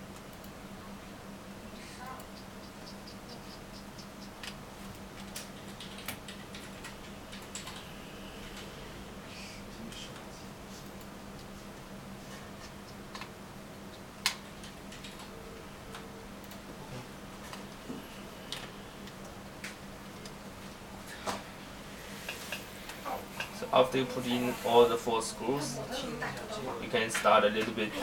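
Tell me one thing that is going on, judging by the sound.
A small screwdriver clicks and taps against plastic parts.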